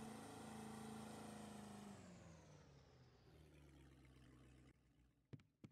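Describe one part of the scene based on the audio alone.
A boat motor hums steadily and then winds down.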